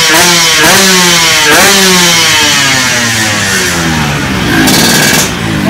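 A two-stroke motorcycle engine revs loudly and repeatedly, its pitch jumping up and slowly falling.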